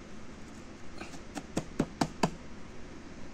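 A plastic bottle taps and clicks sharply several times.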